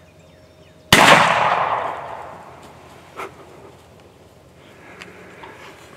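A turkey flaps its wings in the grass.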